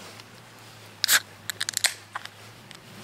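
A metal can hisses and pops as it is opened.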